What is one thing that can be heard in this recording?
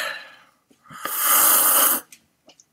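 A man gulps a drink noisily.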